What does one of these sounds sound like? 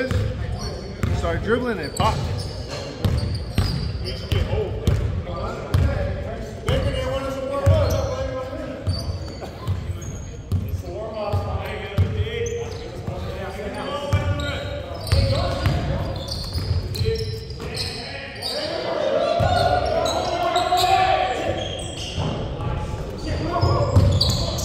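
Basketballs bounce on a hard wooden floor in a large echoing gym.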